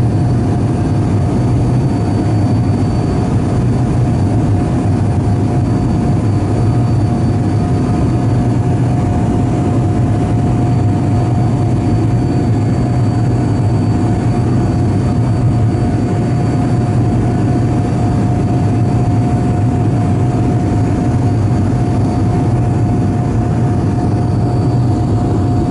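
A jet engine roars steadily close by.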